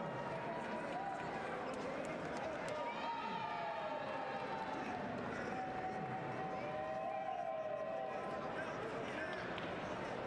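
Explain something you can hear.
Men in the crowd shout loudly.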